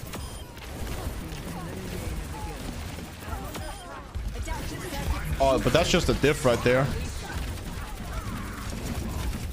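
Gunfire and game effects crackle from a video game.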